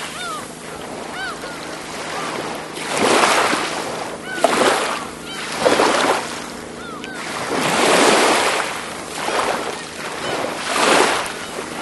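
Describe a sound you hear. Small waves wash up onto a sandy shore and hiss as they draw back, over and over.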